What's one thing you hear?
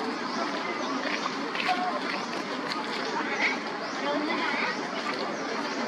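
Dry leaves rustle and crackle under a small monkey's steps.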